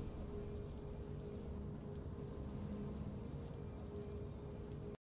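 Triumphant game music plays with a steady low drone.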